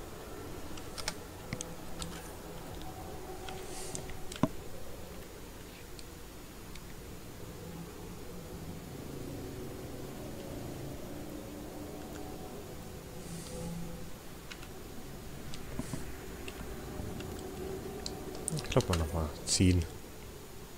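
Short menu clicks and beeps sound now and then.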